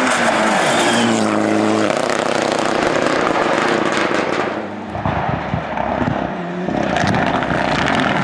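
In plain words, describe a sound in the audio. Tyres crunch and spray gravel on a dirt road.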